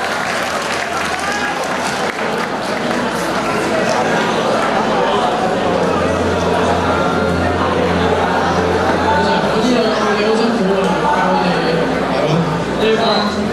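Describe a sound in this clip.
Young men talk with animation through microphones in a large echoing hall.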